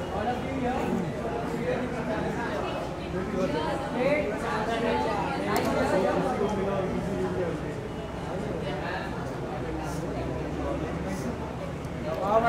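A crowd of people talks and calls out nearby.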